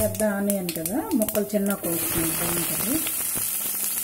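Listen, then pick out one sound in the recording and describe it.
Chopped onions drop into a pot.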